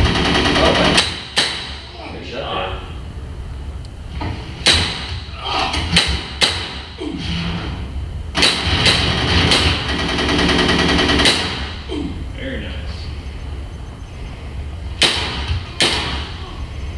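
Gunshots from a shooting game bang sharply through loudspeakers in a room.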